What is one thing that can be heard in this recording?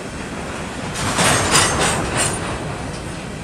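Train wheels clack and squeal on the rails.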